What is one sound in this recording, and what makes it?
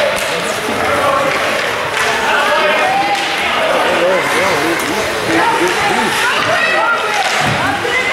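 A crowd of adults and children chatters and calls out nearby in a large echoing hall.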